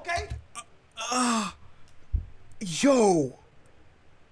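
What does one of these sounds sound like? A young man exclaims loudly in a high, drawn-out voice.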